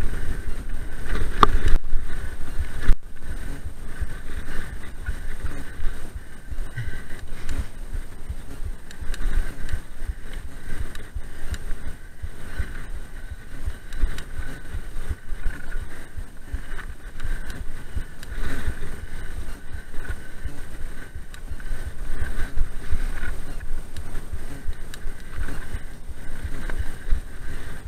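Wind rushes past a moving microphone.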